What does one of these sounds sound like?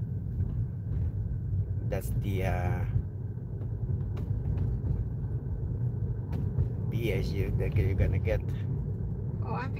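A car's tyres rumble steadily on the road from inside the car.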